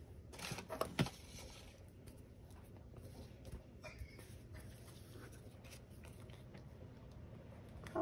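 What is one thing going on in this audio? Hands tap and press paper on a table.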